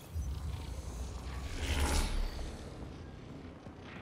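A loud electronic whoosh rushes past.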